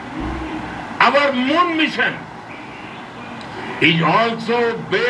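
An elderly man speaks calmly through a television loudspeaker.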